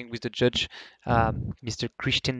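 A man speaks into a microphone with animation.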